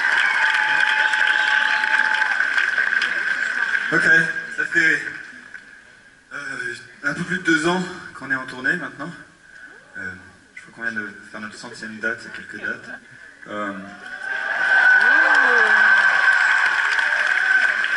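A large crowd cheers and whistles loudly in a big echoing hall.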